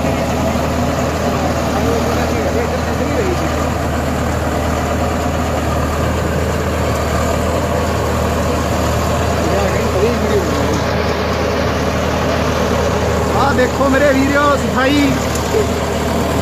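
A diesel tractor engine drones under load.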